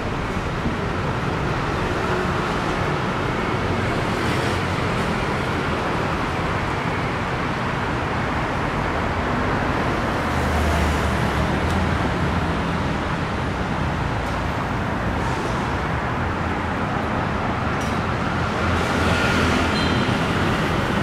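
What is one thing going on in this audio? Street traffic rumbles steadily nearby outdoors.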